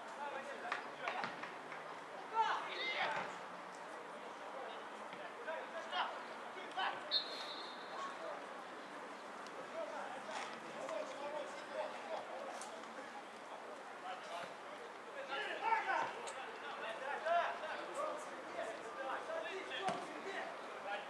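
Men shout and call out across an open field at a distance.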